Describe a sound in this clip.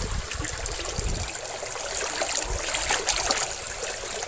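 A hand splashes in flowing water.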